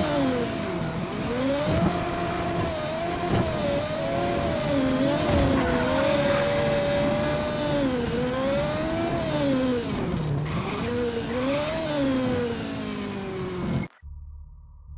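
A racing car engine roars, its pitch rising and falling as it revs.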